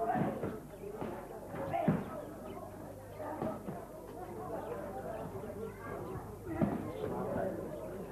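Kicks thud against bodies as fighters spar.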